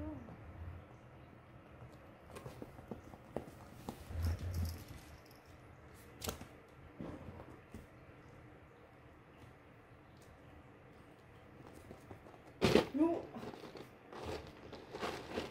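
Kittens scamper and thump about on a soft floor.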